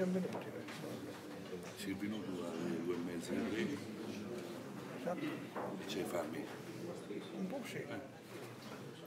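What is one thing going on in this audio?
Men chat quietly in the background.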